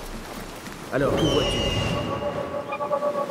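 An eagle screeches.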